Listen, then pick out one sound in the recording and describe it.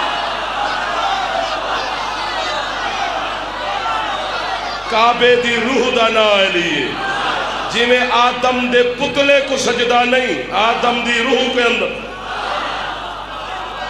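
A large crowd of men chants and shouts in unison.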